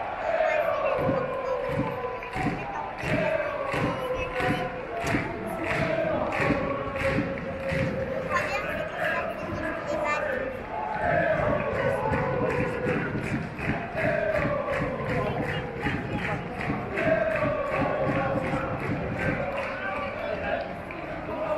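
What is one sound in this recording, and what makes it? A large crowd of fans chants loudly in unison in an open stadium.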